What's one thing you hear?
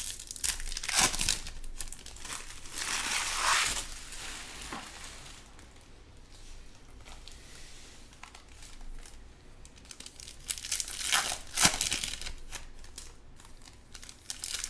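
Trading cards rustle and snap as hands shuffle and flip through a stack.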